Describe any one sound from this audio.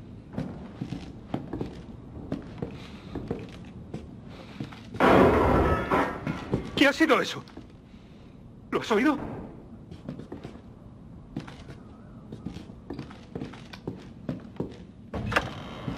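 Footsteps creak slowly on wooden floorboards.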